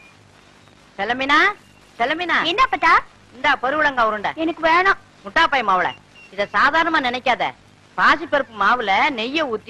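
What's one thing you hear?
An elderly woman speaks loudly and scoldingly, close by.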